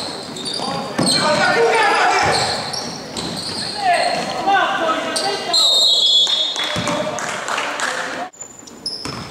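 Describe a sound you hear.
Young men call out to each other across the echoing court.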